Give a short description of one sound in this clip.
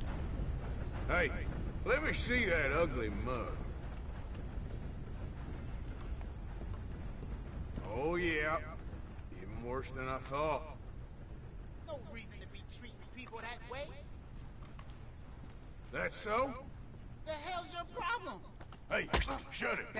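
Two men talk outdoors in turns.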